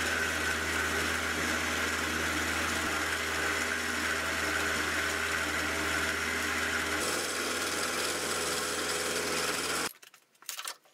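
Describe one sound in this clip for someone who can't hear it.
A milling machine cutter grinds steadily through metal with a high whine.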